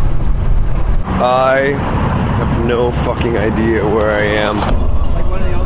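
A young man speaks up close.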